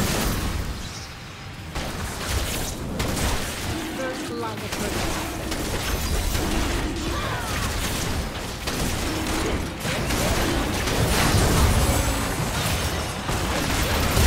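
Spell effects whoosh and crackle in a fast game battle.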